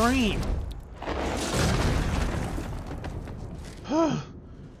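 A huge body crashes heavily to the ground.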